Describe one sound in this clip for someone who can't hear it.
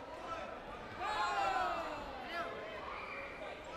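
Young men shout sharply, in a large echoing hall.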